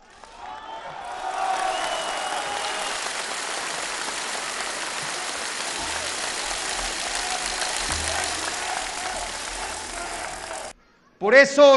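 A crowd applauds steadily.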